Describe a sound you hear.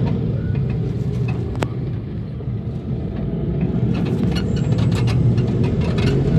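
A motorcycle engine putters past nearby.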